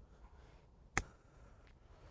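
A golf club chips a ball with a light tap.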